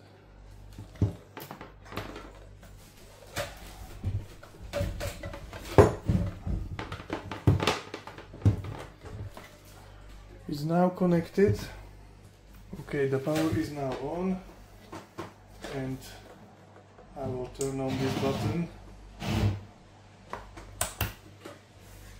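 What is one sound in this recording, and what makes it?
A plastic charger knocks and clatters as it is handled and set down on a table.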